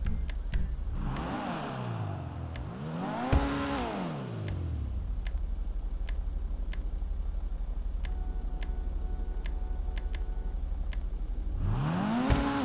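A car engine revs up loudly and falls back, several times.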